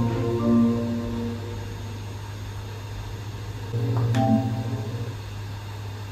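A soft electronic chime plays through a loudspeaker.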